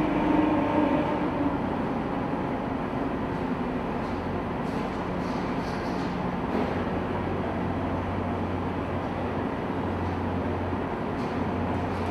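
The diesel engine of a tracked amphibious assault vehicle rumbles as it drives forward in an echoing enclosed hold.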